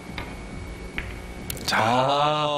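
Billiard balls knock together with short clacks.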